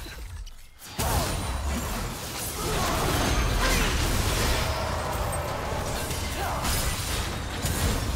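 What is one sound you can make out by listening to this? Video game magic spells whoosh and crash during a fight.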